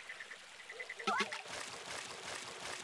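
A fishing line splashes into the water.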